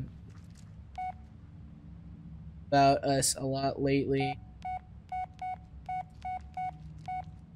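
A mobile phone beeps in short, even pips as its keys are pressed.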